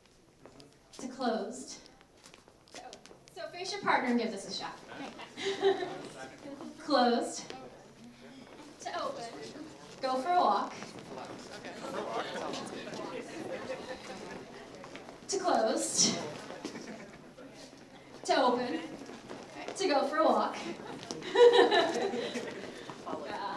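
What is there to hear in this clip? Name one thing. A woman speaks with animation through a microphone and loudspeakers in a large echoing hall.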